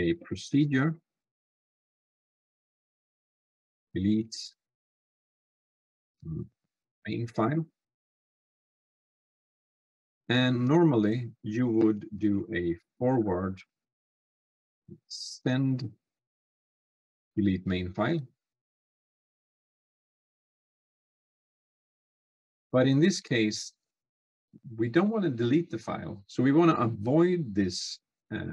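A man speaks calmly and thoughtfully into a close microphone, in short phrases with pauses.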